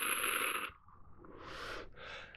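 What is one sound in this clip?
A man exhales slowly.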